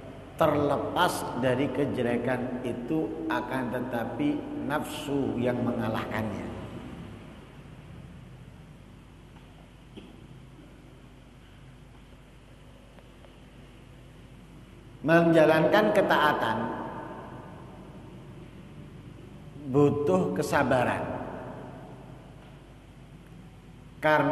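A man speaks into a microphone through a loudspeaker in an echoing hall, with pauses.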